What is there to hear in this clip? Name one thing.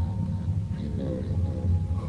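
A young man yawns loudly.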